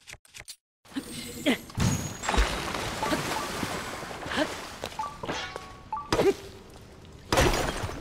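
Ice crackles as a block of ice forms on water.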